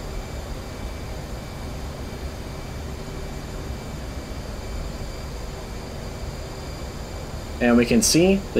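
A jet engine rumbles steadily and low.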